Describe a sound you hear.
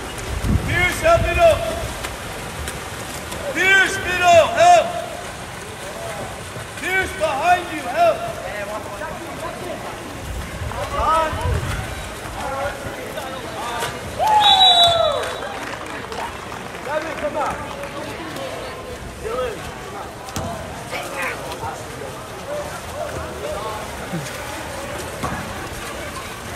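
Spectators shout and cheer from the poolside.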